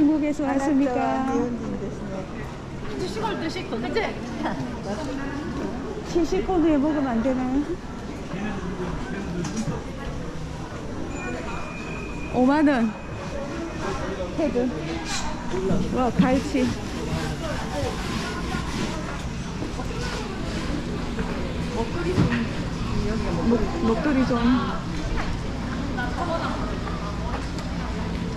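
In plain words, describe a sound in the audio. Many people chatter in a busy, echoing indoor market.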